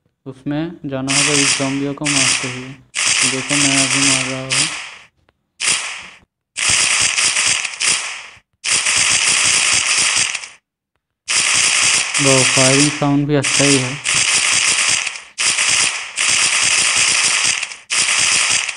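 Rapid gunshots fire in long bursts.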